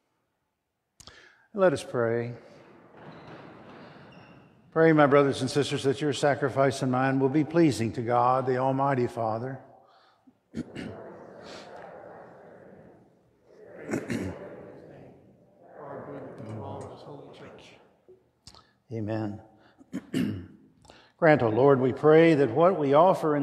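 A man speaks slowly and steadily over loudspeakers in a large echoing hall.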